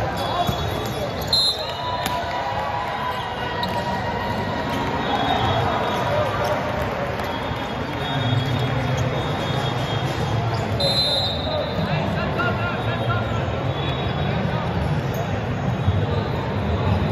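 Young players and spectators chatter and call out in a large echoing hall.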